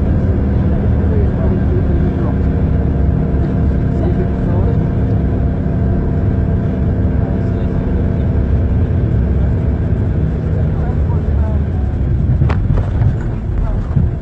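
A vehicle's engine hums from inside as it drives along a snowy road.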